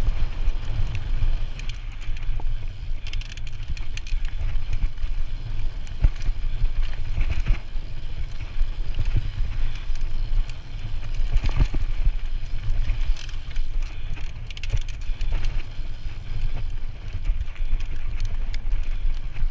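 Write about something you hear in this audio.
A bicycle frame clatters and knocks over bumps.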